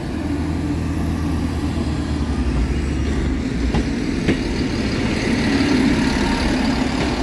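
A diesel train engine rumbles as the train approaches and passes close by.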